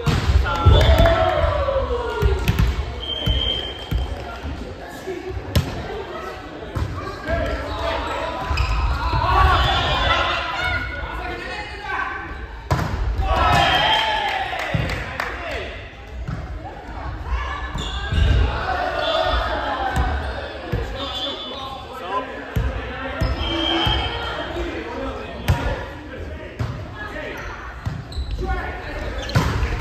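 Young women and men call out and chatter in a large echoing hall.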